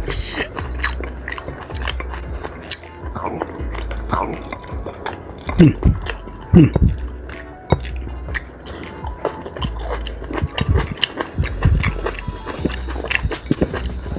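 A plastic spoon clinks and scrapes against a plate.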